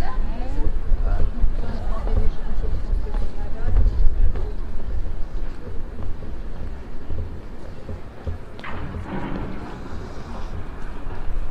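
Adults talk nearby in casual conversation.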